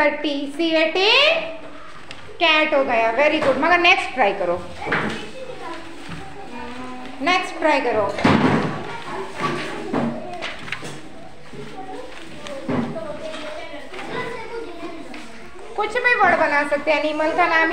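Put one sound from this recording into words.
Young children talk and call out nearby.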